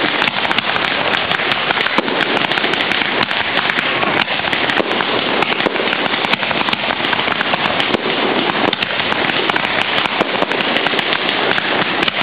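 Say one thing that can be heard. Fireworks boom and bang in loud bursts.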